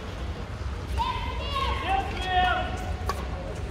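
A man calls out across the court.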